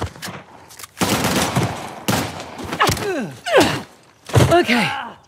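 Blows thud in a brief scuffle.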